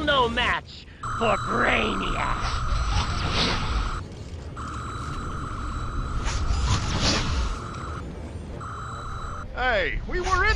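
A sci-fi energy beam hums as it fires.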